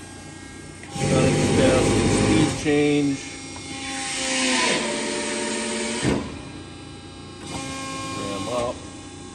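A press brake hums and whines as its ram moves up and down.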